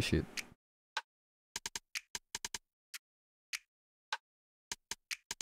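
Short electronic percussion hits play in a sparse, uneven rhythm.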